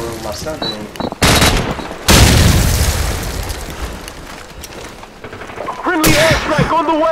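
A young man speaks excitedly close to a microphone.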